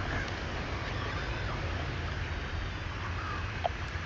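A sheet of paper rustles.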